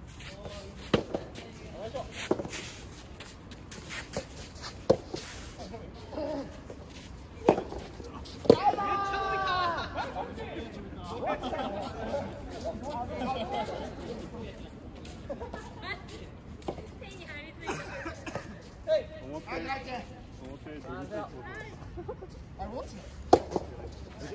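Tennis balls are struck with rackets, popping sharply outdoors.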